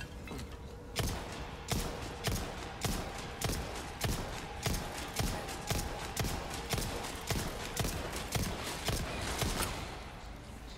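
Gunshots fire in quick, steady succession.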